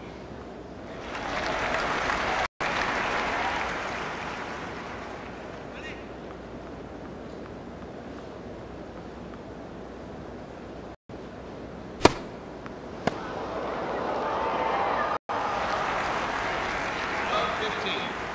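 A crowd cheers and applauds in a large arena.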